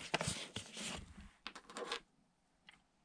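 A cardboard box rustles and scrapes as it is handled.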